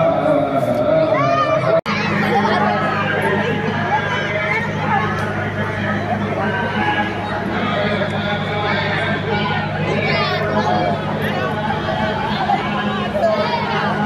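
Children shout and squeal while playing.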